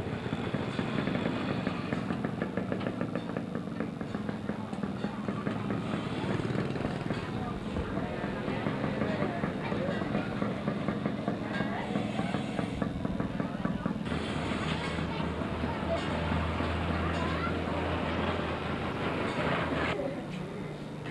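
Many people chatter in a busy market outdoors.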